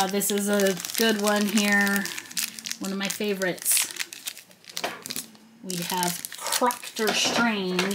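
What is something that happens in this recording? A small plastic bag crinkles.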